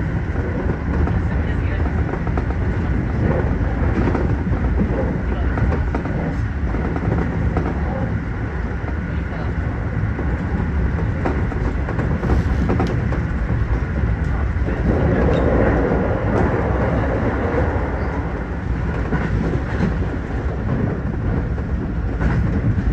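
Wheels click and clatter over rail joints.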